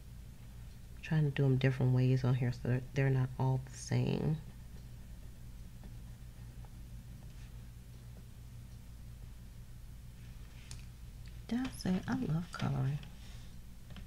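A woman talks calmly and close to a microphone.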